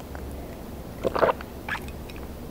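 A woman sips a drink with a loud gulp.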